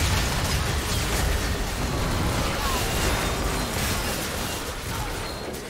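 Spell effects crackle and boom in a busy fantasy battle.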